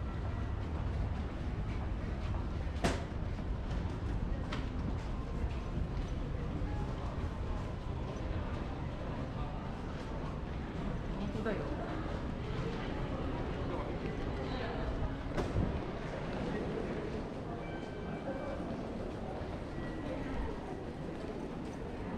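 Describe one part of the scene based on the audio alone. Many footsteps tap on a hard floor in a large echoing hall.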